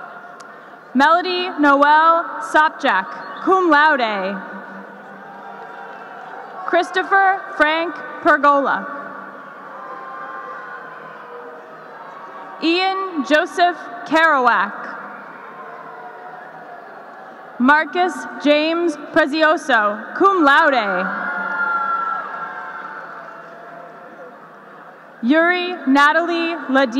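A woman reads out names through a loudspeaker in a large echoing hall.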